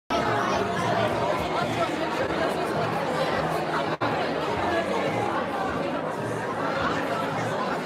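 A crowd of children and teenagers chatter loudly in a large echoing hall.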